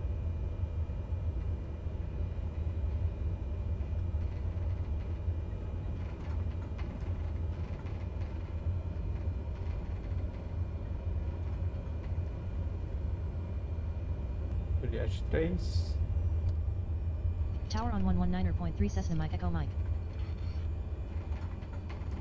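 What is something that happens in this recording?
An aircraft engine drones steadily in a low, even hum.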